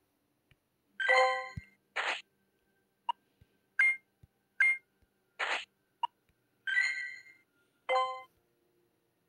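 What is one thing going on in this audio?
Short electronic game chimes ring out.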